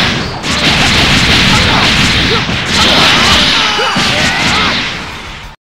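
Punches and energy blasts crash in quick bursts.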